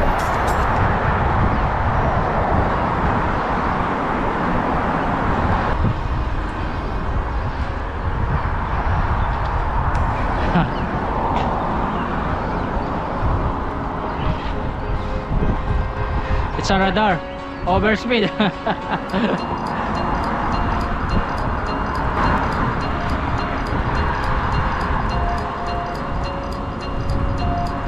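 Wind rushes loudly past a moving bicycle outdoors.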